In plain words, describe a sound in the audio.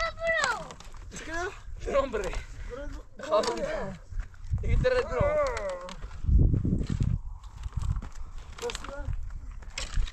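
A shovel digs and scrapes into dry soil.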